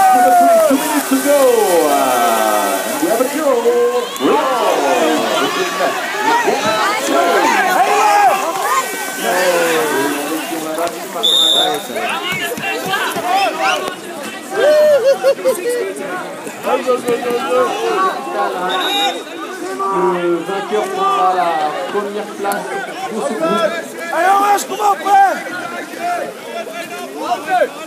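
Paddles splash and churn water nearby.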